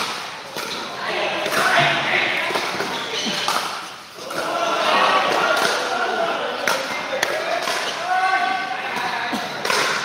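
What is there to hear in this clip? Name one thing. Men call out and talk loudly during play, in a large echoing hall.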